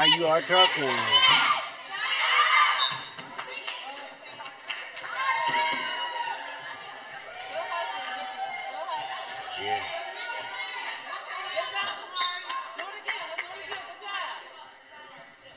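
Young girls shout and cheer in a large echoing gym.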